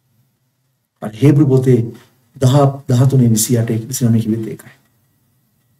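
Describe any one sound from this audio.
A middle-aged man speaks emphatically and close to a microphone.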